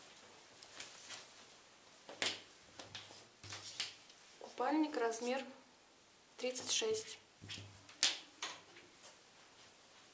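A swimsuit's fabric rustles as hands handle it.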